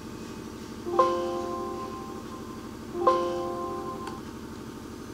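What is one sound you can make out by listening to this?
A short electronic chime sounds twice from a computer.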